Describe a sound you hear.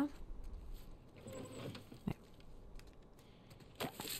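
A drawer slides open.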